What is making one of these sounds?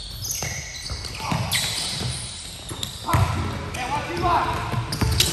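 A basketball bounces on a wooden floor with a hollow echo.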